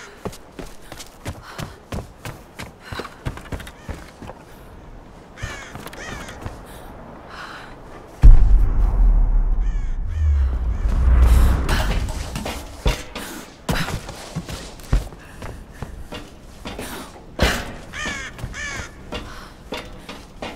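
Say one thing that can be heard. Footsteps thud on wooden boards and dirt.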